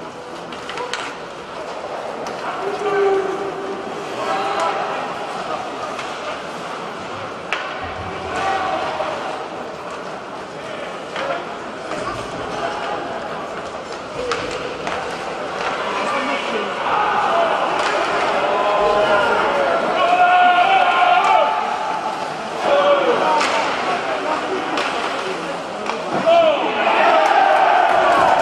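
Hockey sticks clack against the puck now and then.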